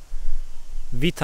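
A young man speaks close into a microphone.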